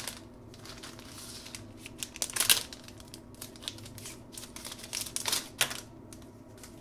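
A plastic wrapper crinkles and rustles as fingers tear it open.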